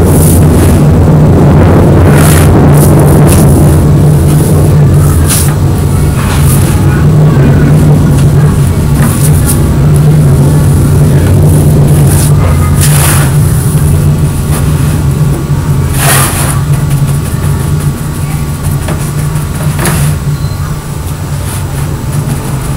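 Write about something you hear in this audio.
A sheet of stiff paper rustles and crackles.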